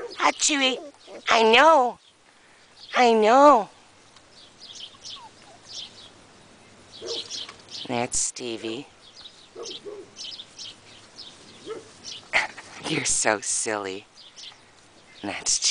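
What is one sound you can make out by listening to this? Puppies rustle through long grass.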